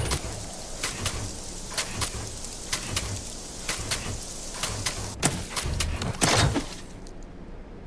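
A spray gun hisses in short, repeated bursts.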